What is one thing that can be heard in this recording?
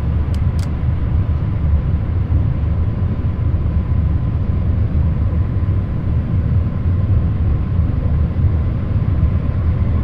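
Rain patters on a windscreen.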